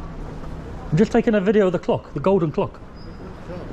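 A man speaks loudly and with animation close to the microphone.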